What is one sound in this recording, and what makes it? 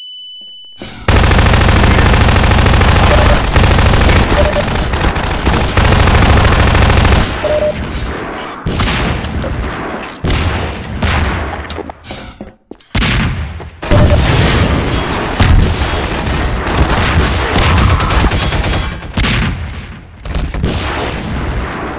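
A submachine gun fires rapid bursts.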